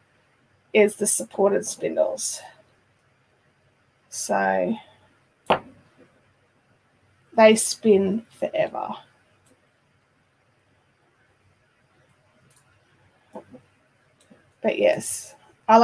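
A woman talks calmly and close to a microphone, in short bursts with pauses.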